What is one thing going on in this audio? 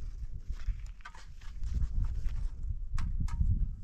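A concrete block knocks as it is set down onto a block wall.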